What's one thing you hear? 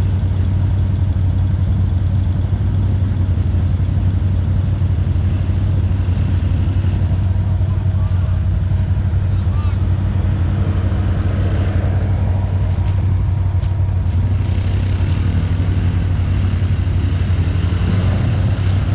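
An ATV engine rumbles steadily close by.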